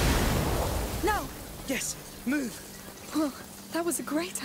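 A young boy shouts eagerly.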